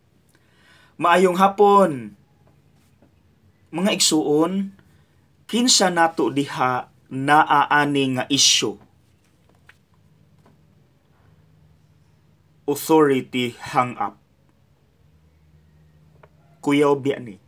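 A man speaks close to the microphone with animation, in short bursts with pauses.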